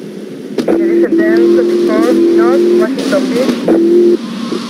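Car tyres screech.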